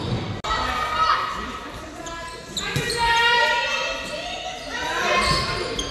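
Young women call out to each other across the hall.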